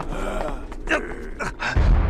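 A young man grunts and strains with effort.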